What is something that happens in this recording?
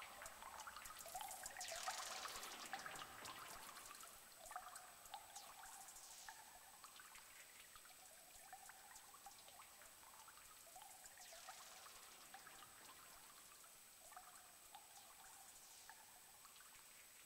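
A synthesizer makes whooshing sweeps that rise and fall.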